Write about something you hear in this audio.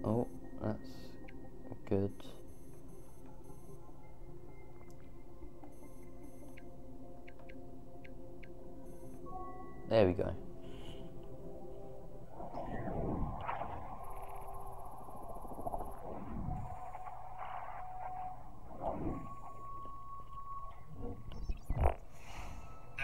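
Electronic tones beep and hum as a game interface responds.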